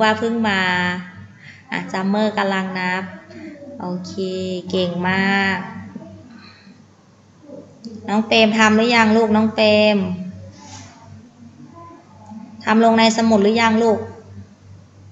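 A child calls out loudly over an online call.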